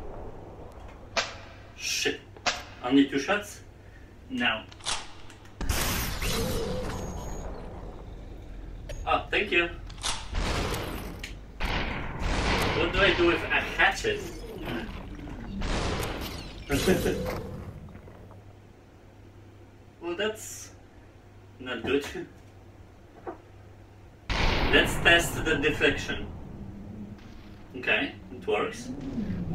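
Gunshots crack sharply, again and again.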